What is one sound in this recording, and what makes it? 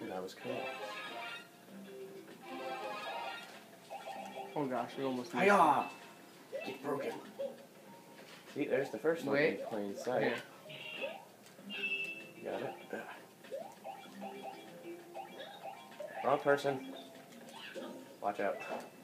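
Game sound effects chime and pop through a television speaker.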